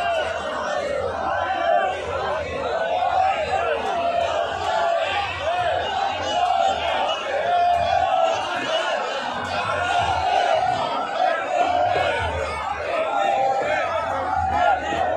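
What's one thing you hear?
A large crowd of men chants and shouts loudly outdoors.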